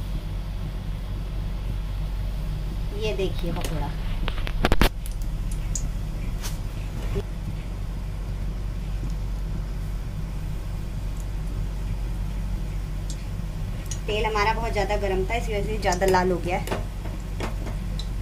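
Batter sizzles as it fries in hot oil.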